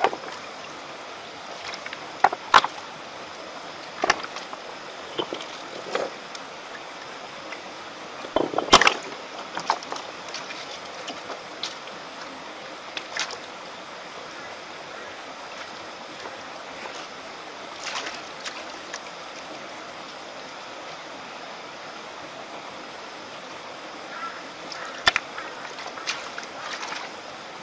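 A stream trickles steadily.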